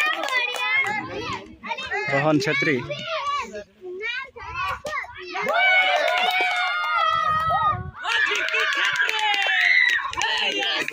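Boys shout and cheer excitedly outdoors.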